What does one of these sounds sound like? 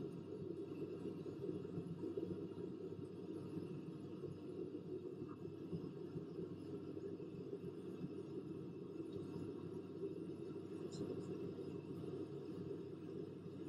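Jet engines drone steadily inside an airliner's cockpit.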